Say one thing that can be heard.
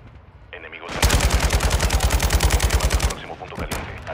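A rifle fires a rapid burst of automatic shots.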